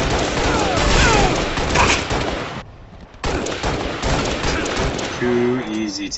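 Gunfire and explosions boom loudly.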